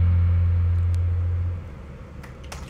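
A band plays amplified music with a deep, droning bass note that ends abruptly.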